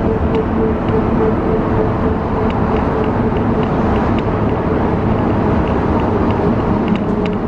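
A vehicle's engine hums and rumbles steadily from inside while driving.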